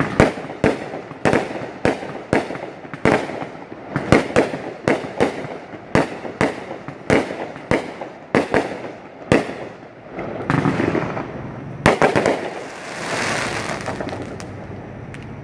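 Fireworks crackle and sizzle overhead.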